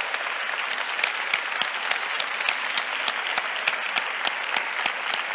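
An elderly woman claps her hands.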